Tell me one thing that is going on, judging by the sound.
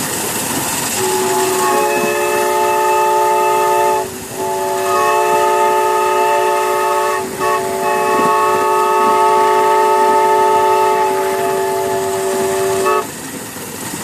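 A steam whistle blows in long blasts.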